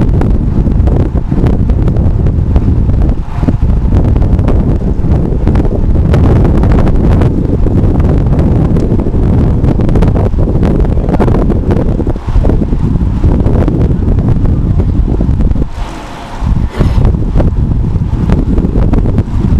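Wind buffets loudly against a moving bicycle.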